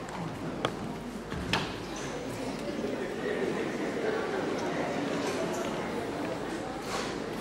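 Footsteps thud across a wooden stage.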